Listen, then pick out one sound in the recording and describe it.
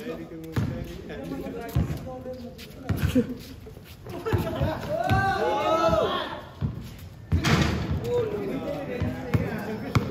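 A basketball bounces on hard pavement.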